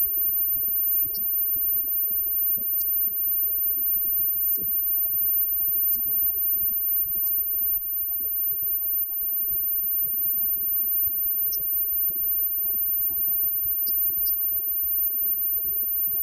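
A live rock band plays loudly.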